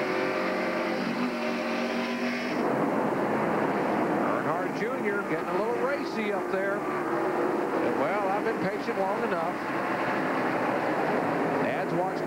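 Race car engines roar at high speed.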